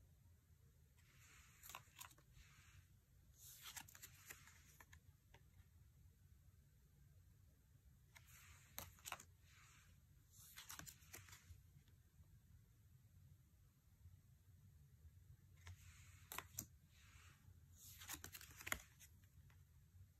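Cards slide and shuffle with soft papery rustles and taps.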